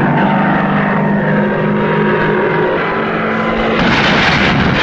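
A propeller plane's engine roars and whines as it dives.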